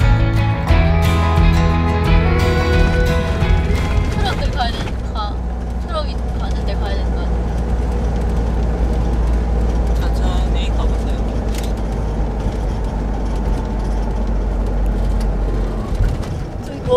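A car engine hums steadily with road noise as the car drives along.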